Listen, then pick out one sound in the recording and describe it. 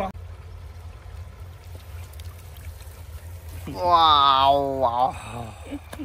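Water drips and splashes from a fishing net.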